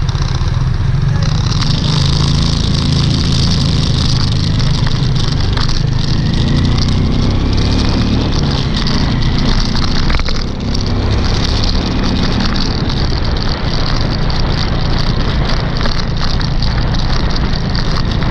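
A scooter engine hums steadily up close while riding.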